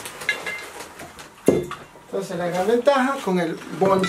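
A metal tank clanks as it is lifted.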